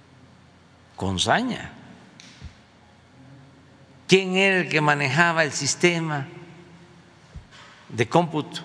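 An elderly man speaks into a microphone in short bursts with pauses.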